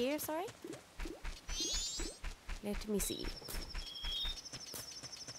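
Rapid footsteps tap in a video game.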